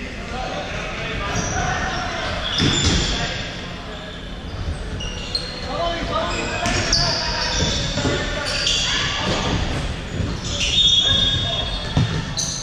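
A ball thuds off players' feet.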